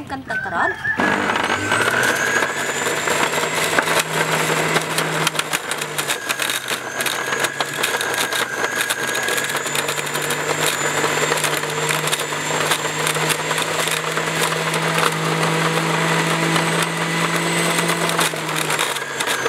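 An electric juicer motor whirs steadily.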